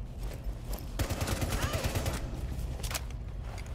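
A rifle fires a rapid burst of shots indoors.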